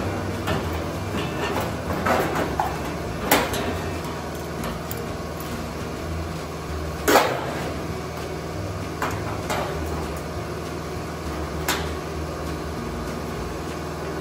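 Metal clamps clank and clatter against sheet metal.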